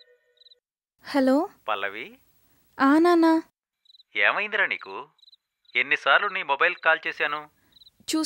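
A young woman speaks calmly into a telephone, close by.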